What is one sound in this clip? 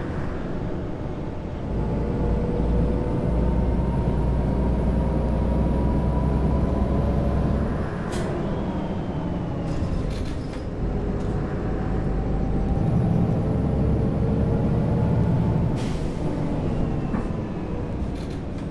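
A bus engine hums and whines as it accelerates and changes gear.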